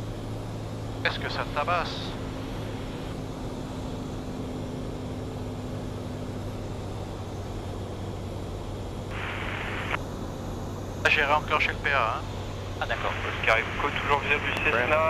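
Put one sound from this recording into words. A man speaks calmly over a headset intercom.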